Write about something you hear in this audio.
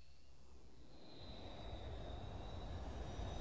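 An airplane's engines drone steadily.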